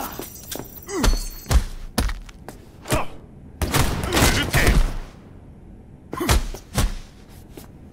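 Heavy punches thud against a body.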